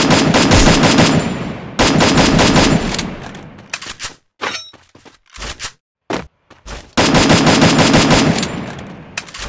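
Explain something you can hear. Rapid gunfire rattles in loud bursts with echoing tails.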